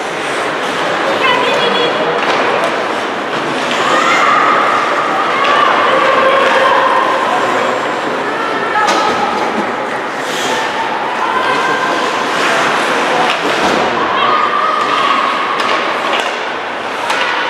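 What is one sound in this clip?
Young players shout and call out across the ice.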